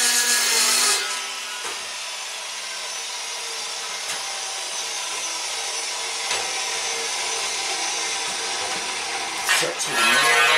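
A saw blade whirs as it slowly spins down and fades.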